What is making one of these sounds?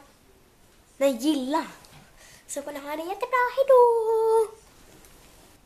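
A young girl speaks close up in a high, sing-song voice.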